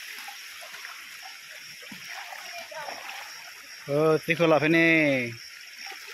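Water splashes as a boy wades through a stream.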